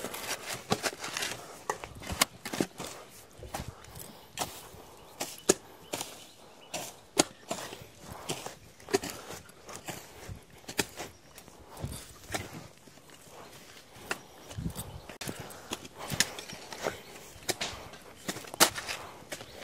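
Grass and weeds rustle as they are pulled and cut.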